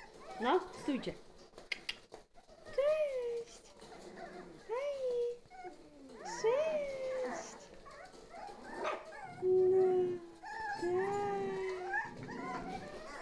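Puppies whine and yelp in high, rising cries, close by.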